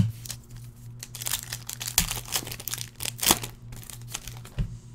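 A plastic card wrapper crinkles and tears.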